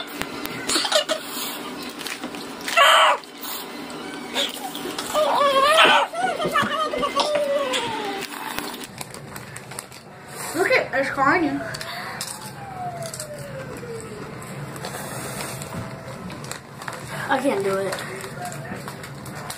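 Children talk and exclaim with animation close by.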